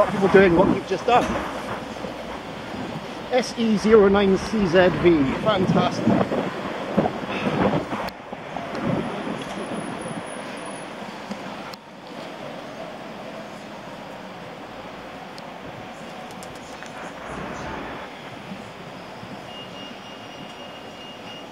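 Car traffic hums along a busy street.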